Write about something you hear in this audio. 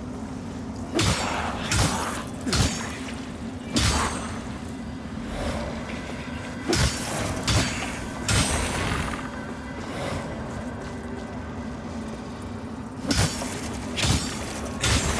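Weapons strike and slash in combat.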